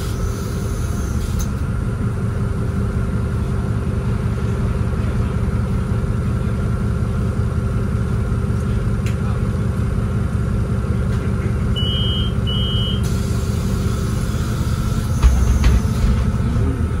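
A diesel city bus engine rumbles while driving, heard from inside the bus.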